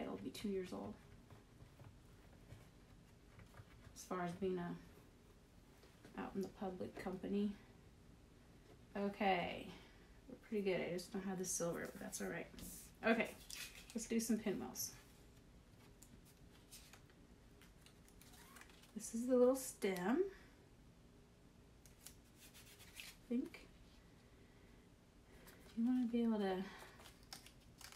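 A woman talks calmly close by, in short bursts with pauses.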